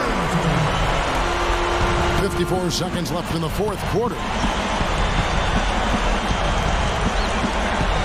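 A basketball bounces with dull thumps.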